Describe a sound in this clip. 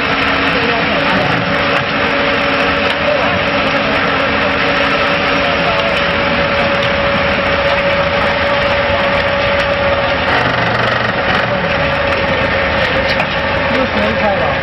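A concrete vibrator hums steadily in wet concrete.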